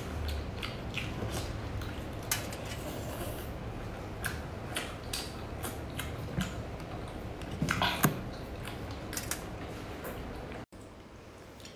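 A young woman slurps and chews food close to a microphone.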